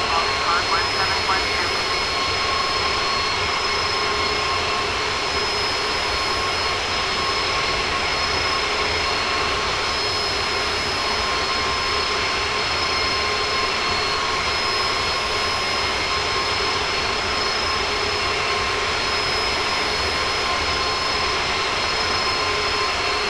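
Jet engines roar and whine steadily.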